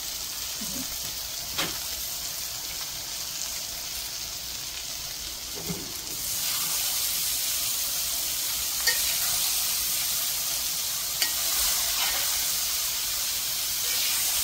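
A spatula scrapes and stirs cabbage in a metal pan.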